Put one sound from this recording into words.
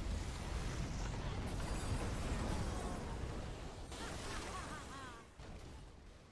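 Magic spells crash and boom in a fierce fantasy battle.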